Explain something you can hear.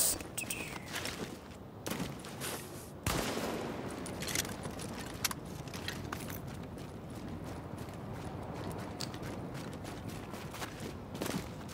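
Footsteps crunch over snow.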